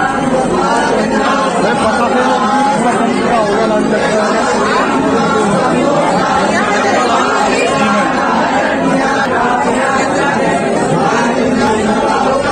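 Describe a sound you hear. A crowd of people chatter loudly all around, close by.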